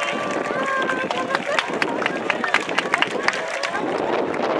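Spectators clap their hands.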